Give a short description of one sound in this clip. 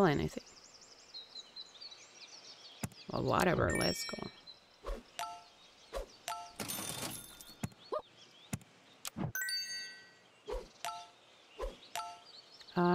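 Short playful game chimes and pops sound again and again.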